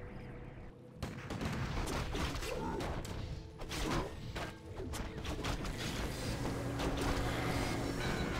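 Weapons clash and strike repeatedly in a battle.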